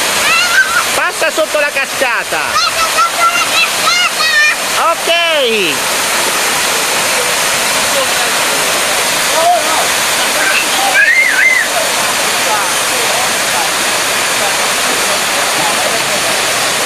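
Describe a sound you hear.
A waterfall pours steadily into a pool.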